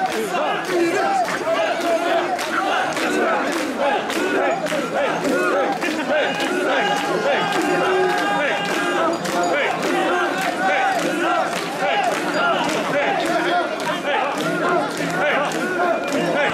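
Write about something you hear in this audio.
A large crowd of men chants loudly and rhythmically close by.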